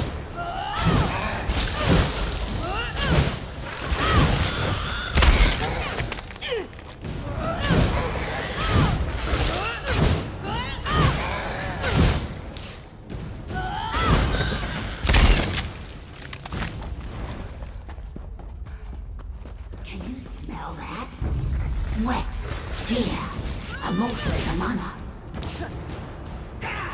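Creatures screech and chitter.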